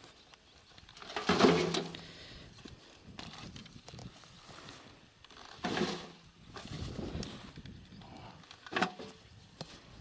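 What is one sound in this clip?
Clods of soil thud into a metal wheelbarrow.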